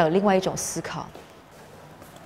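A woman speaks earnestly nearby.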